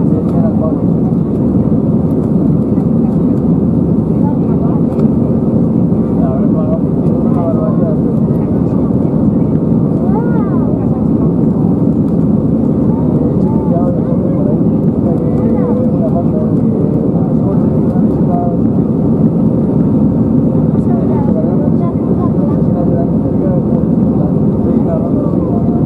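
A jet airliner's engines roar steadily, heard from inside the cabin.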